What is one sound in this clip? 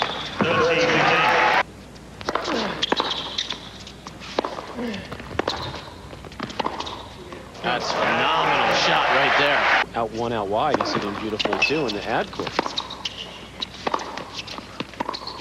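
A tennis ball is struck hard with a racket, back and forth.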